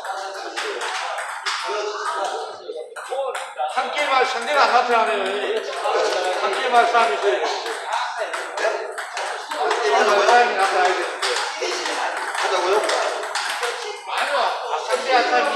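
A man talks with animation nearby, explaining.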